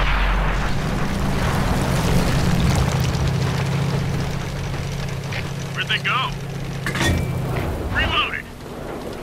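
A tank engine rumbles and drones steadily.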